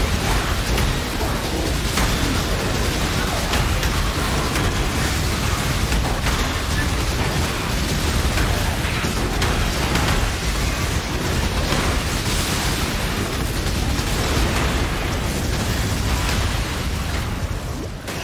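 Ice shatters and cracks repeatedly.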